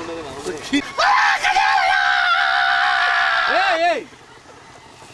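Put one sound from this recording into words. A man laughs loudly in a long, drawn-out cry nearby.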